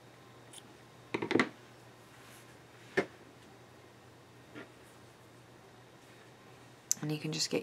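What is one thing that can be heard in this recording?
Hands softly rustle and handle yarn.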